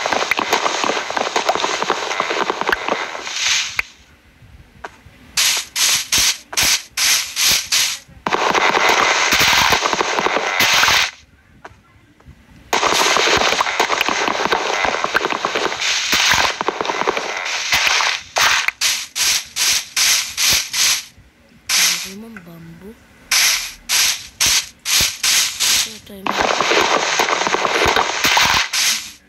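Wood is chopped with rapid knocking taps.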